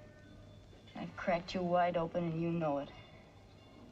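A woman speaks with concern, close by.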